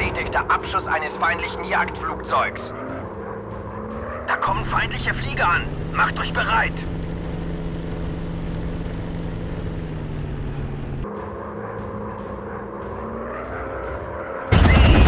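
A propeller aircraft engine drones steadily, its pitch shifting now and then.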